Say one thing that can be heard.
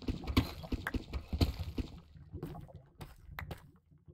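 A pickaxe chips at stone with repeated sharp knocks.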